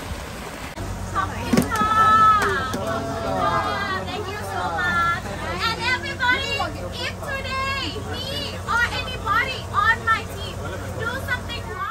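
A young woman talks and shouts with animation nearby.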